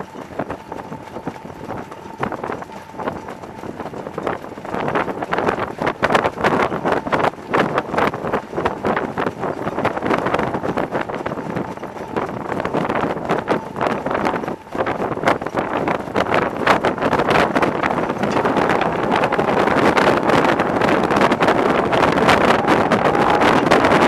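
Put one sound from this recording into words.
Horses' hooves pound rapidly on a dirt track.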